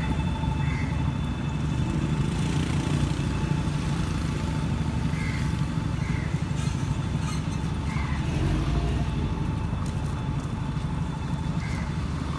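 Footsteps scuff on a pavement outdoors.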